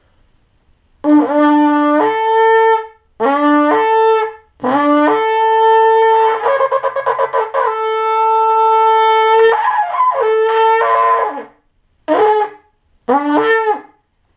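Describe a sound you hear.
A man blows a ram's horn in long and short blaring blasts.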